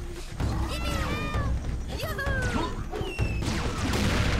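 Creatures shriek with high, wavering cries.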